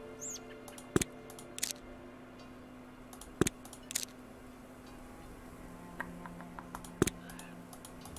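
Sharp menu clicks sound now and then.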